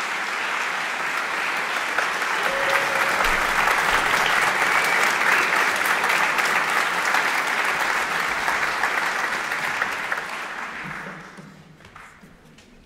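An audience applauds loudly in a large echoing hall, then the applause fades away.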